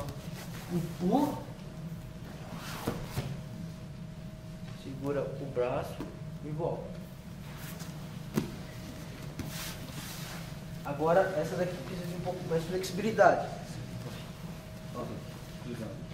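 Bodies shift and thud on a padded mat.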